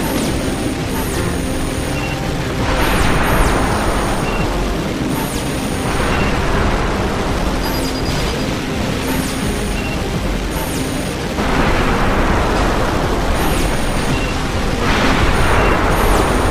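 An engine rumbles low and steady.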